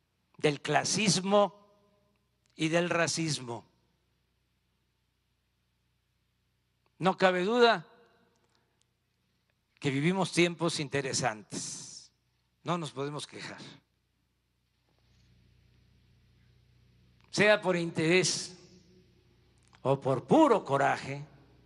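An elderly man speaks calmly into a microphone, in phrases broken by pauses.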